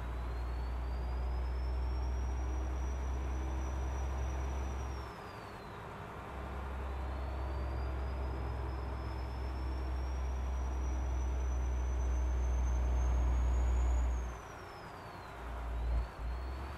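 A truck engine drones and whines, rising in pitch as it speeds up and dropping at each gear change.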